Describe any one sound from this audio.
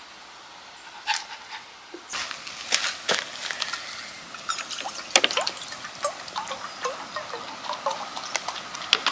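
A plastic water bottle crinkles in a hand.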